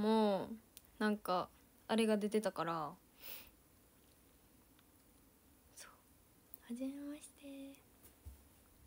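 A young woman speaks brightly and closely into a microphone.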